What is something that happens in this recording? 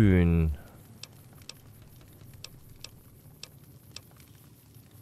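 Soft menu clicks tick as a selection moves through a list.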